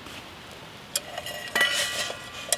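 Metal cups clink against each other.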